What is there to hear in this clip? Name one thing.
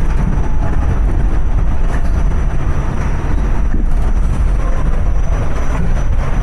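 A subway train rumbles and rattles loudly along the tracks.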